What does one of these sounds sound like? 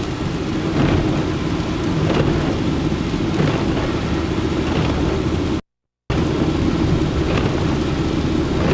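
Tyres hiss and rumble steadily on a wet road inside a moving car.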